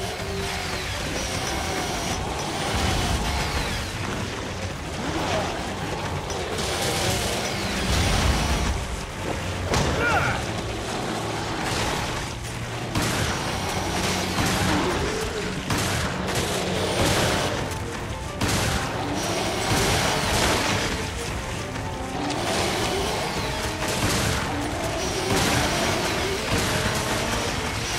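Monsters growl and snarl up close.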